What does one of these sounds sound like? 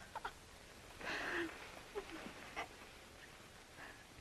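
A woman laughs softly.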